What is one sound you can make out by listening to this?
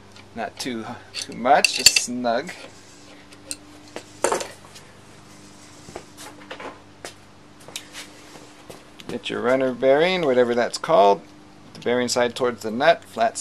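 Metal tools clink and scrape against engine parts.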